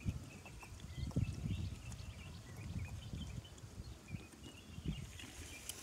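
A young man gulps water from a bottle.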